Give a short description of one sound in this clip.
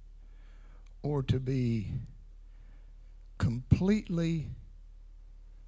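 A middle-aged man speaks with animation into a microphone through loudspeakers.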